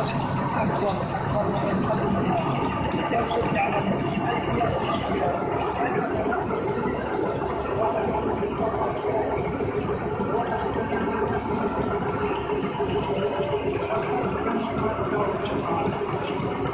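A machine whirs and rattles steadily.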